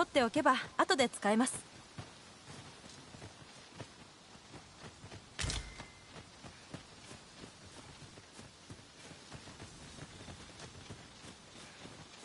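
Footsteps patter softly on a grassy path.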